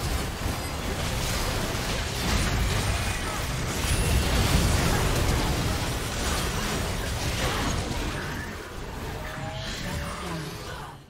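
Game spell effects crackle and boom during a fast fight.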